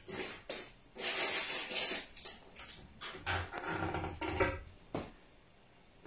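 Dishes clatter at a counter.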